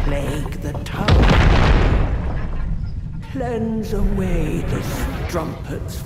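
A huge creature's foot thuds heavily on stone.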